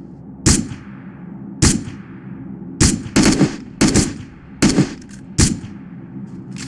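A rifle fires loud, sharp shots in quick succession.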